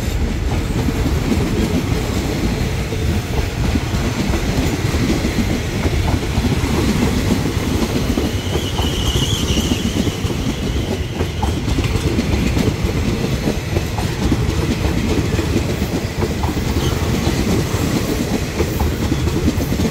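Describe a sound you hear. Steel wheels clack and squeal over the rails.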